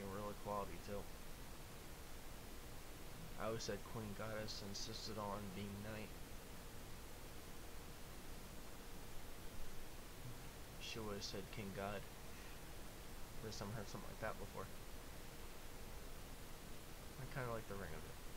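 A young man sings softly and close to a microphone, in short phrases with pauses.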